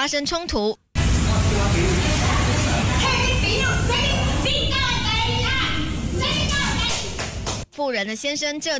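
A woman shouts angrily at close range.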